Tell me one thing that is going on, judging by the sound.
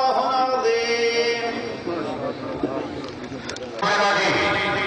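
A young man chants into a microphone over a loudspeaker.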